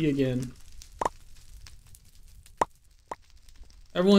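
A wooden block is placed with a short knock.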